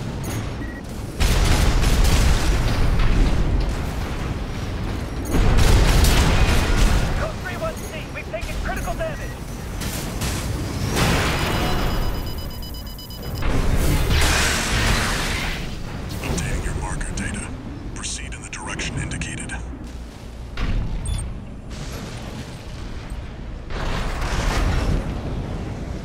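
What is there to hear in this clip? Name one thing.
Rocket thrusters roar.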